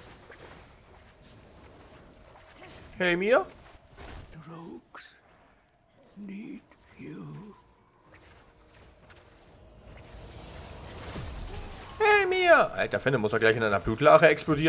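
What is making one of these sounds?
Weapons strike and magic blasts burst in a fight.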